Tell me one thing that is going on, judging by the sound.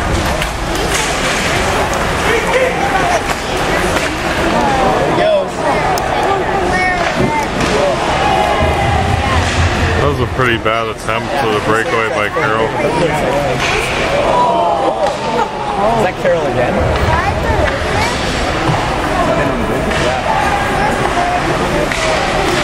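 Spectators chatter and call out nearby in a large echoing arena.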